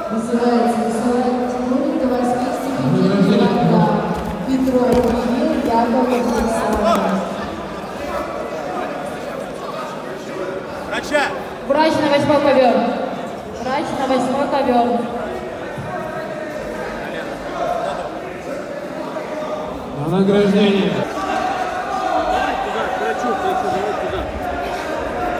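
A crowd talks and shouts in a large echoing hall.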